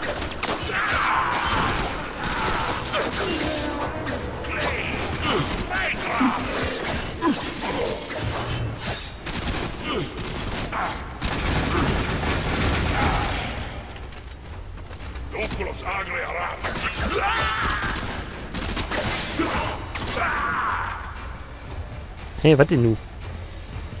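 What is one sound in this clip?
Swords clash and slice in a fight.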